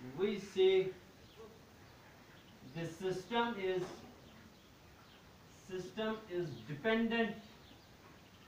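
A man speaks calmly, explaining in short phrases.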